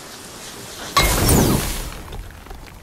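A burst of fire roars and whooshes, then fades.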